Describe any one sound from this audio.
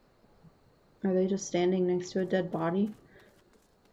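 A young woman speaks loudly and with animation close to a microphone.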